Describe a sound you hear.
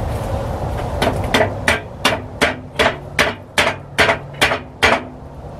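A man hammers with quick, even blows.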